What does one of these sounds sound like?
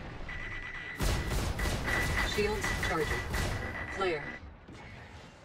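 A spacecraft's guns fire in rapid bursts.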